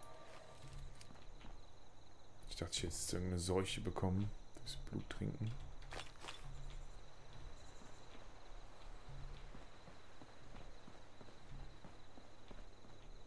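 Footsteps crunch steadily on gravel.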